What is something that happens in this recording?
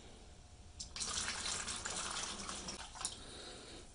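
Liquid pours and splashes into a plastic tub.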